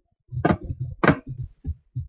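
Heavy footsteps thud quickly on a hard floor.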